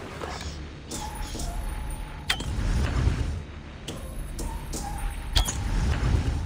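A bowstring snaps as arrows are loosed.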